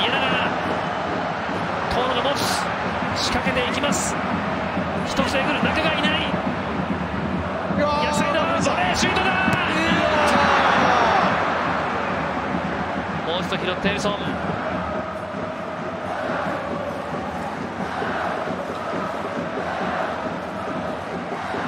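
A crowd murmurs and cheers in a large open stadium, swelling loudly during a goalmouth scramble.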